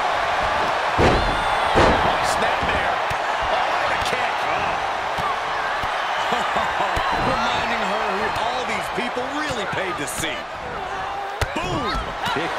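Bodies slam hard onto a wrestling ring mat with loud thuds.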